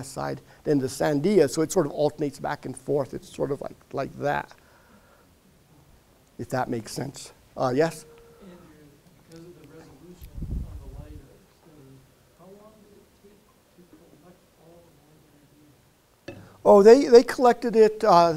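A man speaks calmly and clearly through a microphone.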